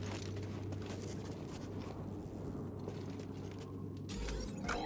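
Footsteps crunch on stone.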